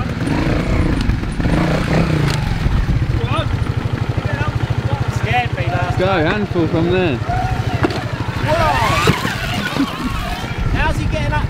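A trials motorcycle engine putters and chugs at low revs.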